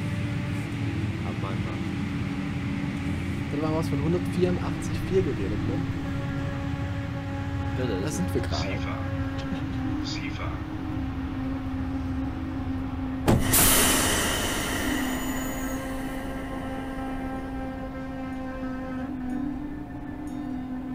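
A train's electric motors hum steadily as it rolls along the track.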